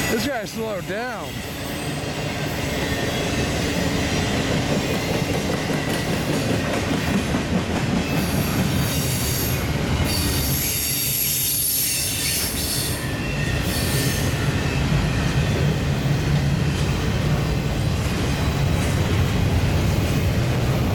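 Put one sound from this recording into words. A long freight train rumbles past close by, its wheels clattering steadily on the rails.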